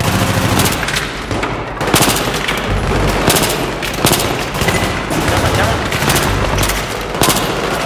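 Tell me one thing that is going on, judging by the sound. Gunshots fire in quick bursts and echo.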